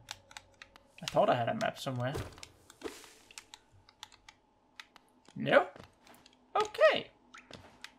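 Short game sound effects click and swish.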